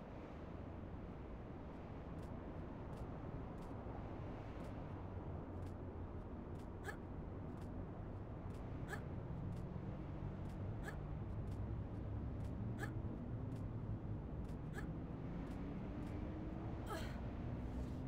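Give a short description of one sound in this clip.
Hands grip and clank on a metal lattice in slow, regular knocks while climbing.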